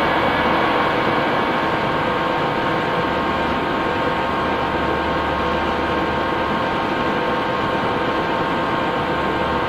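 An electric train hums and rumbles steadily along the rails.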